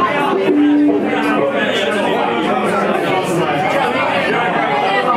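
An electric guitar plays loudly.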